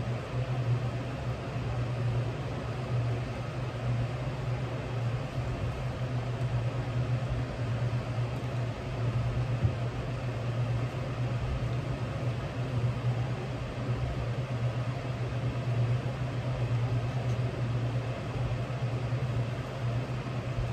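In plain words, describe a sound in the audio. A sewing machine motor hums steadily nearby.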